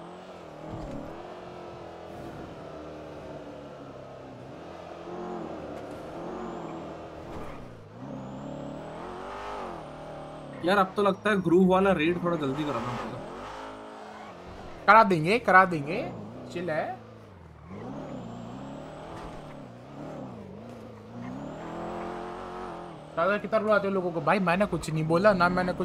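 A car engine hums and revs, rising and falling as the car drives.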